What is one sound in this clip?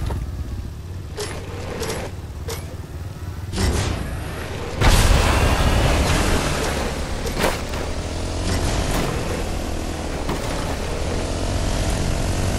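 A quad bike engine roars as it drives along.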